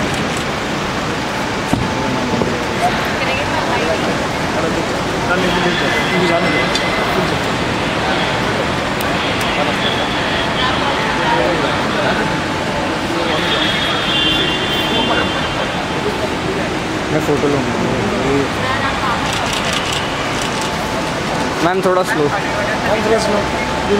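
A crowd of people chatters nearby, in a large echoing hall.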